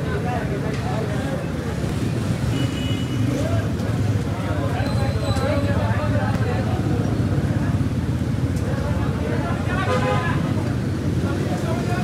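Hot oil sizzles and bubbles in a large pan.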